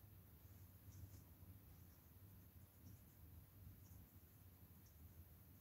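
A paintbrush softly brushes against a surface.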